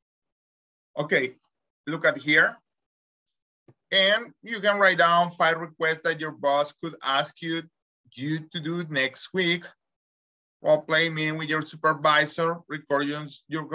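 A man speaks clearly over an online call, explaining at a steady pace.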